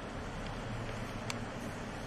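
A cloth sheet rustles as it is unfolded.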